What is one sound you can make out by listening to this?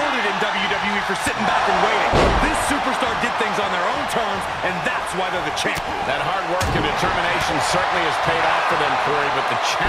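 Wrestlers slam onto the ring mat with heavy thuds.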